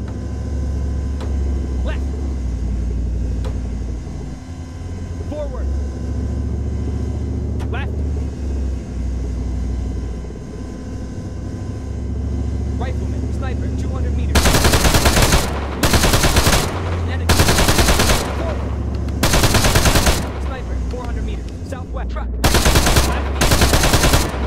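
A heavy vehicle engine rumbles steadily as it moves along.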